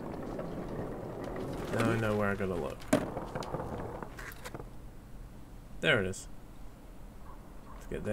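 Skateboard wheels roll over pavement.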